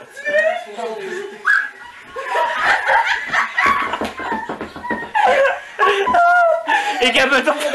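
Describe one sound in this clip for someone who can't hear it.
Women talk and laugh excitedly nearby.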